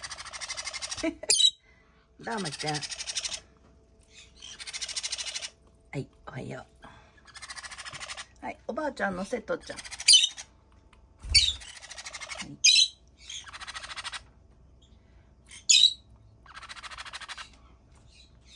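Parrot chicks make raspy, buzzing begging calls in repeated bursts.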